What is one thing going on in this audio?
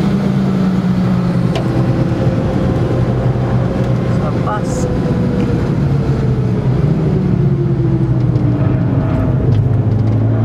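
Tyres roll on smooth tarmac.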